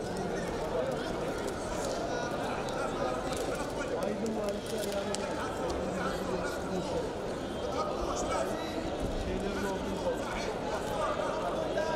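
A large crowd murmurs and chatters in an echoing arena.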